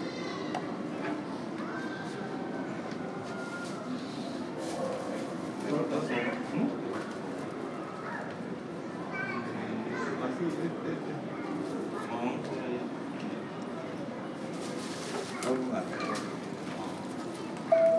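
Low murmur and hum fill a large, echoing hall.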